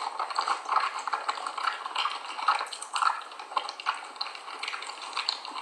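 A woman chews a mouthful of cornstarch close up, with crisp squeaky crunches.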